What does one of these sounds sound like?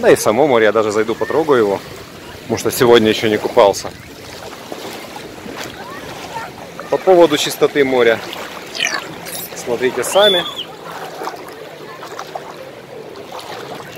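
Shallow sea water laps gently nearby, outdoors.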